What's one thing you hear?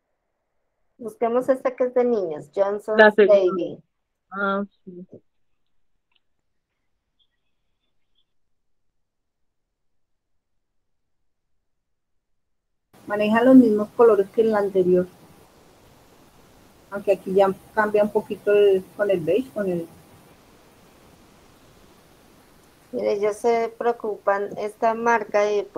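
A young woman speaks calmly over an online call.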